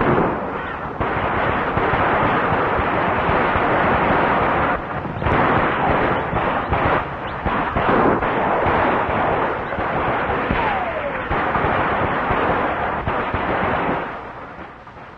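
Horses gallop and hooves pound on dirt.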